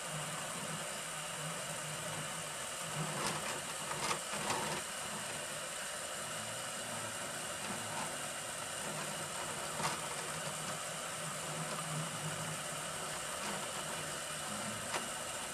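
A 3D printer hums and whirs steadily as its print head moves back and forth.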